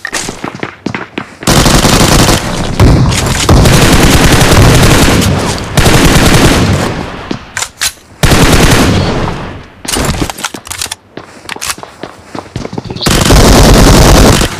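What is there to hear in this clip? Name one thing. Gunshots and explosions burst loudly from a mobile game.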